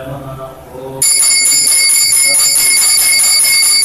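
A small hand bell rings loudly and continuously.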